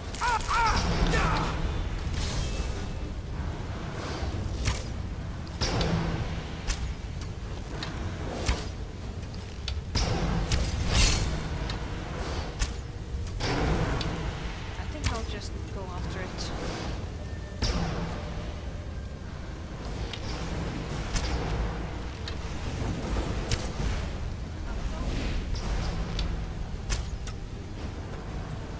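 A bowstring twangs again and again as arrows are loosed.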